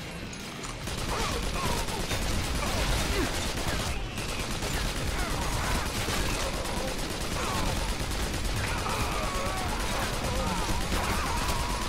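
Creatures shriek and screech.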